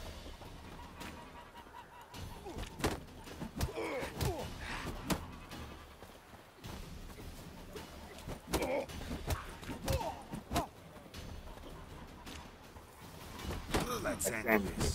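Fists land punches with heavy thuds.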